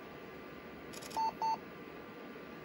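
A computer beeps briefly twice.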